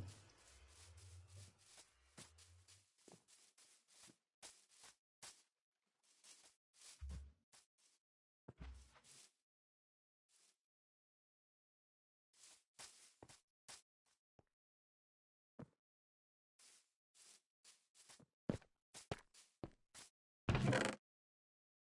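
Footsteps patter on grass.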